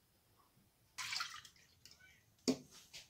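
Milk pours into a metal saucepan.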